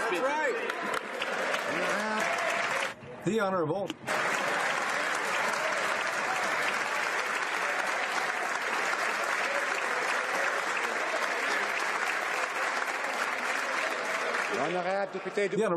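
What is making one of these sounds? A large crowd applauds and cheers.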